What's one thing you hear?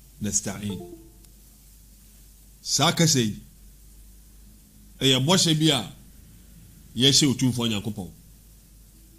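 A man speaks into a close microphone in short, measured phrases with pauses between them.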